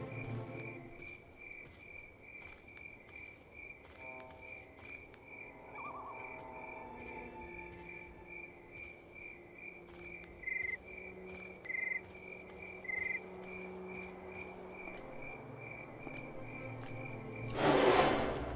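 Footsteps tap steadily and quickly on a hard surface.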